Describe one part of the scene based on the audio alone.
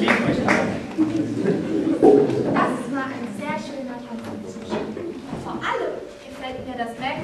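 A young woman speaks on stage, heard from a distance in a hall.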